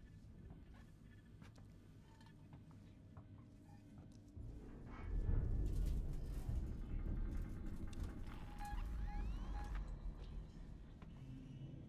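A low mechanical rumble drones steadily and swells louder partway through.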